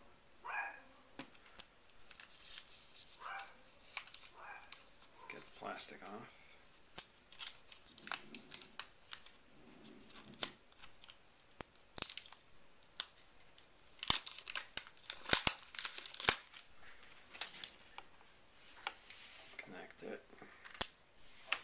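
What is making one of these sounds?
Small plastic parts click and tap.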